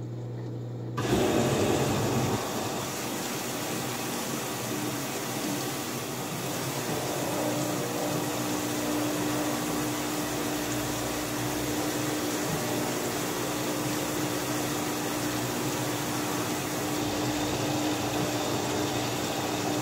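A washing machine drum spins with a steady whirring hum.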